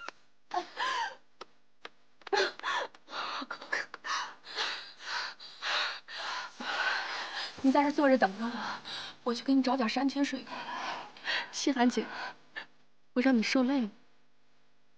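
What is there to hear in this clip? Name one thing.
A young woman sobs and cries.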